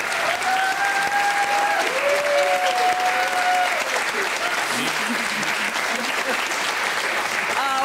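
An audience claps and cheers throughout.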